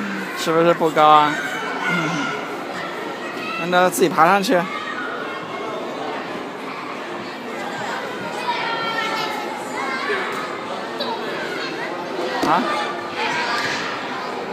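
Children and adults chatter in the background.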